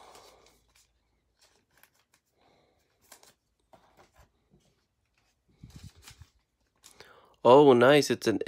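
Plastic card sleeves crinkle and rustle close by.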